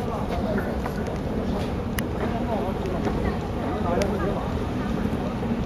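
A conveyor belt machine rumbles steadily.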